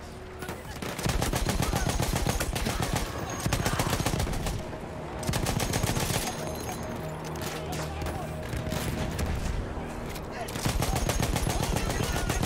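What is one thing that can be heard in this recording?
A machine gun fires rapid bursts up close.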